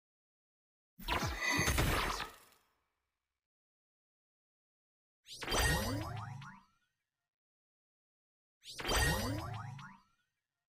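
Video game attack sound effects whoosh and burst.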